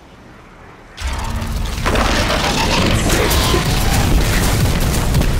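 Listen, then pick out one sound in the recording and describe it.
Fiery explosions burst and crackle amid weapon fire.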